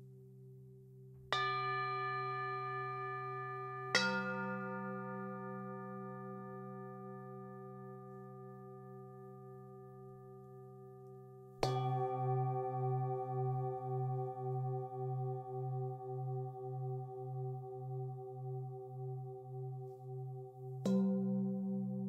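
Metal singing bowls are struck with a mallet and ring out with long, fading tones.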